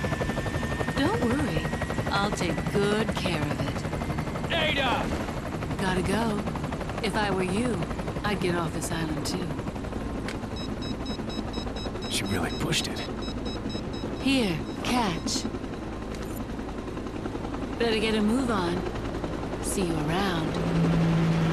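A young woman speaks calmly and teasingly.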